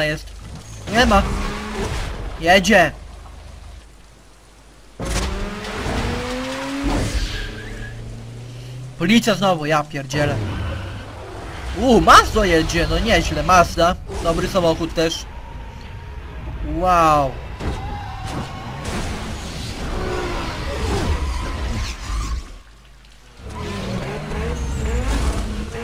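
Car engines rev hard and roar, rising and falling in pitch.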